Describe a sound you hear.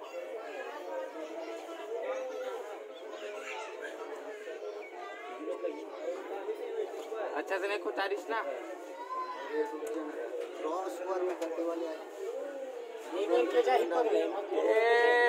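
Young men talk with one another nearby.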